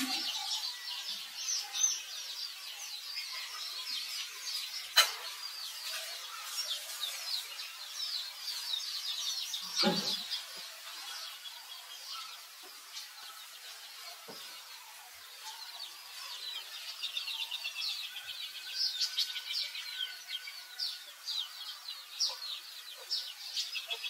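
A newborn monkey squeaks in high, thin chirps.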